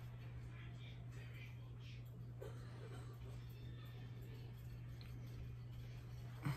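A makeup brush softly brushes across skin close by.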